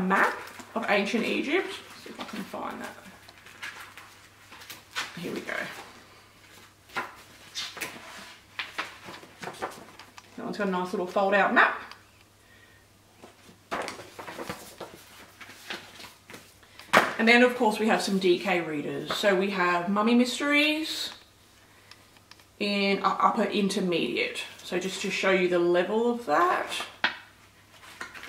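A woman talks calmly and clearly, close by.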